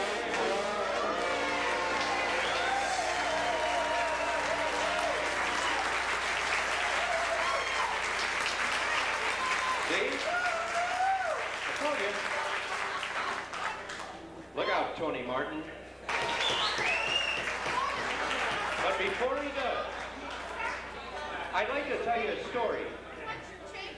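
A small jazz band plays a lively tune.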